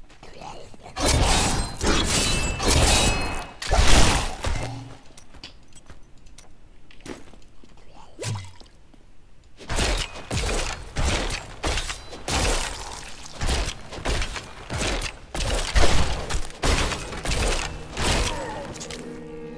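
Magic blasts and blows crash in quick bursts.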